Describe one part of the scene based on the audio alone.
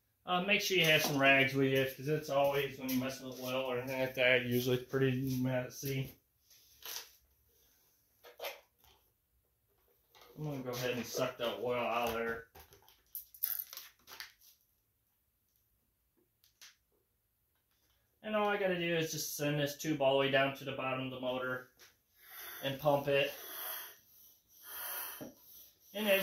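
A man talks calmly and close by, in bursts with pauses.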